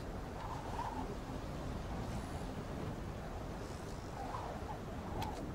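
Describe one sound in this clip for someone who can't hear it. Waves wash steadily against a shore.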